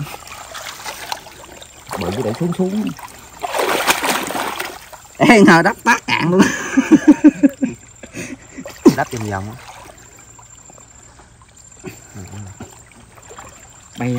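Muddy water splashes and sloshes as hands dig in it.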